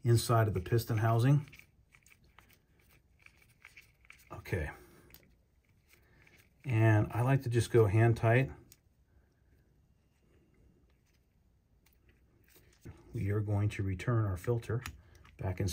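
Small metal parts click and scrape softly as they are handled.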